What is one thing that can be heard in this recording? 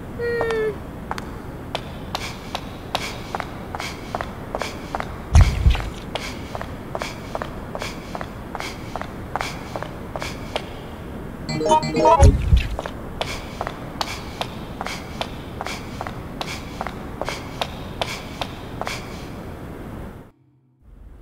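Footsteps run quickly and evenly on a hard floor, echoing.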